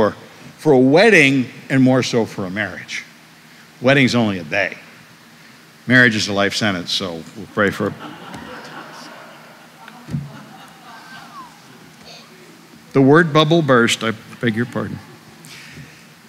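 An older man preaches with animation through a microphone in a large echoing room.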